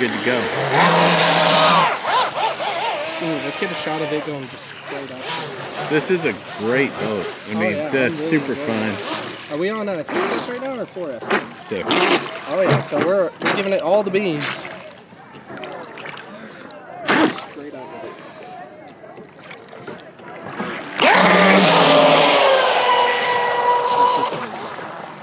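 Water splashes and sprays behind a speeding model boat.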